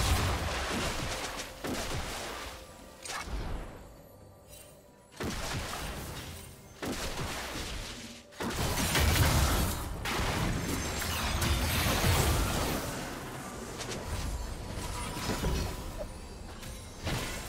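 Spells and weapons clash in a game battle, with sharp hits and bursts.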